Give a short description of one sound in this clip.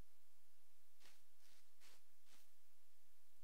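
Soft footsteps pad on grass.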